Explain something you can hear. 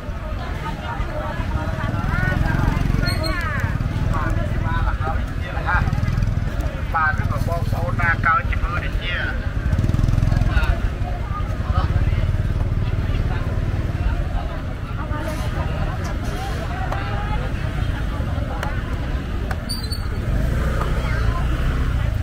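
Motorbike engines idle and putter close by.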